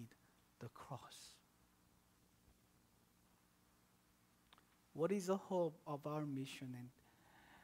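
A man speaks calmly through a microphone, pausing between phrases.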